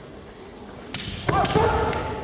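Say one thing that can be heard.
A bamboo sword strikes with a sharp crack.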